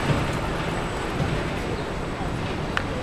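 A car drives past.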